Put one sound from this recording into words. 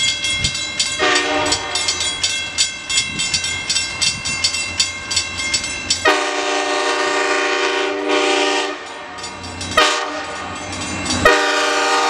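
A diesel locomotive blows its air horn.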